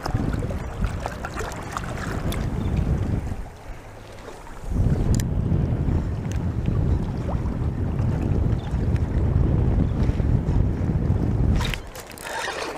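Wind buffets a microphone outdoors over choppy water.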